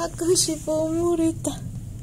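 A hand softly strokes a cat's fur.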